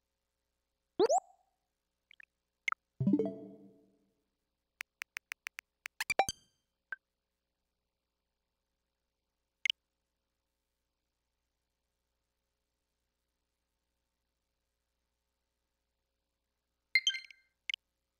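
Short electronic menu clicks and chimes sound now and then.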